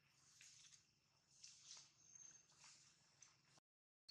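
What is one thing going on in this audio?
A monkey's feet rustle through dry leaves.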